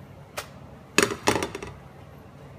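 A frying pan clatters onto a metal stove grate.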